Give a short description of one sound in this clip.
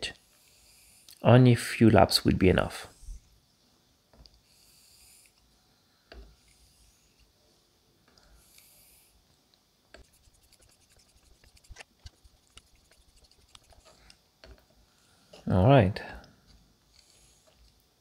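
A metal tool scrapes softly along a hard block.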